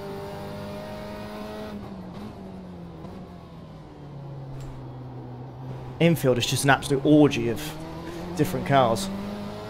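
A racing car engine drones and shifts pitch as it changes gear.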